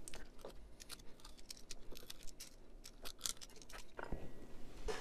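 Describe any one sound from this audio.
A screwdriver tip scrapes and clicks against metal.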